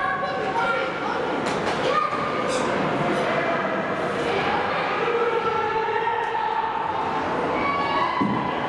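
Skate blades scrape across the ice in a large echoing rink.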